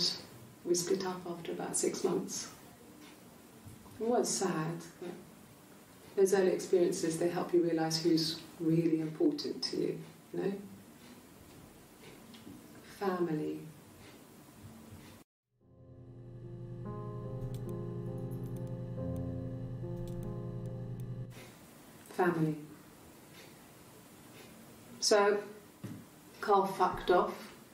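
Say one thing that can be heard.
A young woman talks calmly and quietly.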